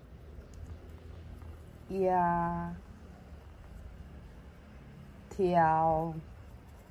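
Cord rubs and rustles as hands tie a knot.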